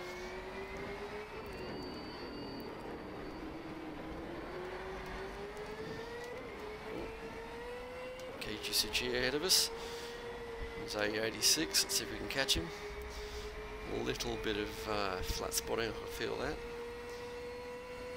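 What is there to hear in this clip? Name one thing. A car engine hums steadily, its pitch rising and falling with speed.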